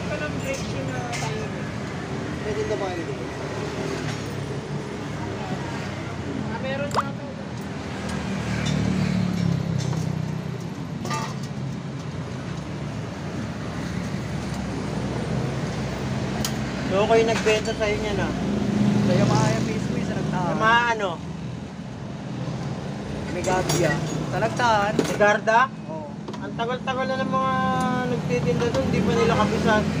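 Metal parts clink and tap.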